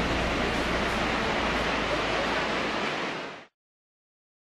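A waterfall roars with a steady rush of water.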